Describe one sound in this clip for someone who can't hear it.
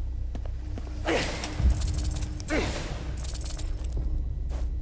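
Coins jingle and clatter in a sudden burst.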